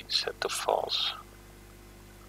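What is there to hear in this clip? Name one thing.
A man speaks briefly, close to a microphone.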